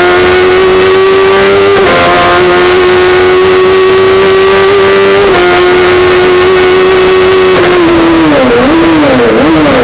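A race car engine screams loudly at high revs from inside the cabin.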